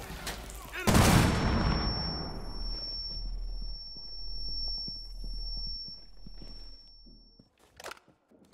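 A high steady ringing follows the blast.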